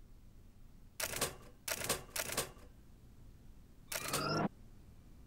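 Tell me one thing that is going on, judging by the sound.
Typewriter keys clack a few times.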